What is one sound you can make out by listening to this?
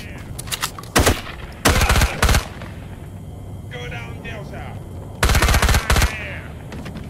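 A submachine gun fires short rapid bursts in a cave that echoes.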